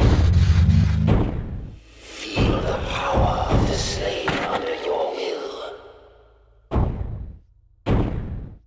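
Heavy metal footsteps of a robot stomp and clank.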